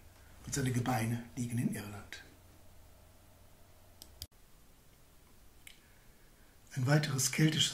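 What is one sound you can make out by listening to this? A middle-aged man speaks calmly through a computer microphone, with pauses.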